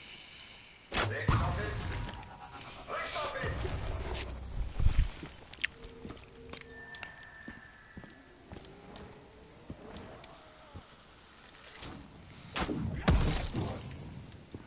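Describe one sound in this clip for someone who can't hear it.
A magic bow fires with a loud booming blast.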